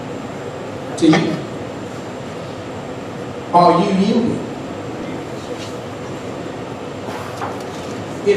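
A man speaks slowly into a microphone over a loudspeaker in an echoing room.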